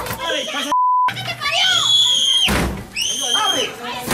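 A battering ram bangs against a door.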